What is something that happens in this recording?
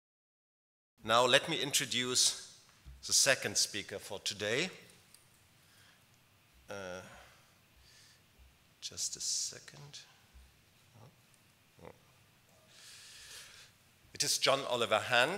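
A middle-aged man speaks through a microphone in a large hall, pausing now and then.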